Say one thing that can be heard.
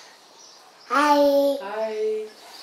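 A toddler babbles in a high voice close by.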